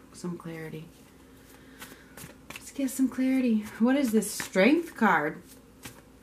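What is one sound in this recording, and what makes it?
Playing cards slide and tap together as a deck is handled.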